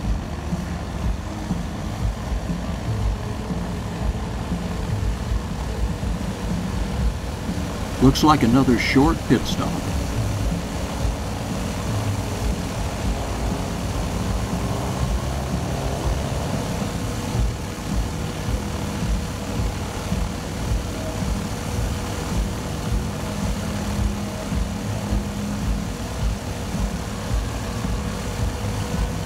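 A light aircraft engine idles with a low, steady rumble.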